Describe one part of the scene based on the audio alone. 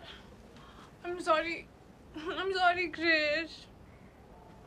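A young woman speaks loudly with excitement, close by.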